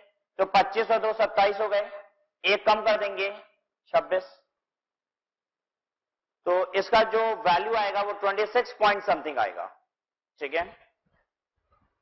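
A man speaks calmly and clearly, close by, explaining.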